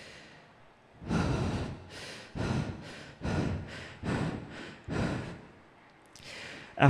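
A young man makes rhythmic beatbox sounds into a microphone.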